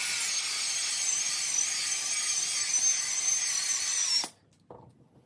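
A power polisher whirs steadily with a high whine, then stops abruptly.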